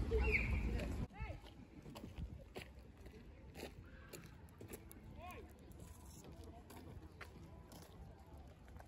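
Water ripples gently against a wooden dock.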